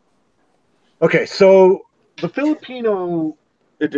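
A second man talks over an online call.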